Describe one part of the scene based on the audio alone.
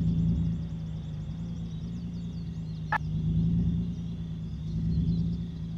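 A pickup truck engine hums as it drives at low speed.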